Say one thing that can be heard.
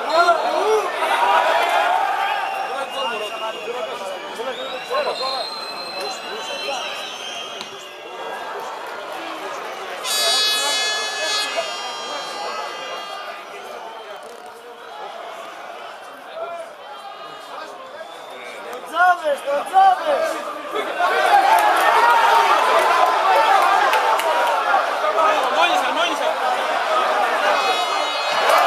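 A large crowd cheers and chants loudly in an open stadium.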